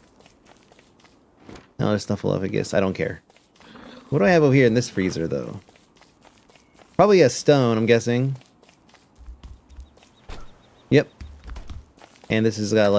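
Soft footsteps patter on the ground.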